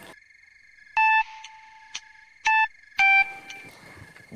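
A phone beeps several times.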